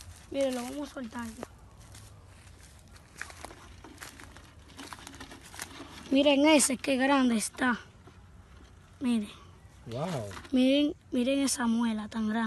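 A young boy talks excitedly nearby, in short bursts.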